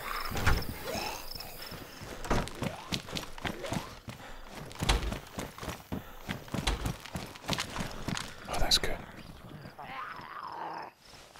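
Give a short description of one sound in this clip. Footsteps thud across a hard floor indoors.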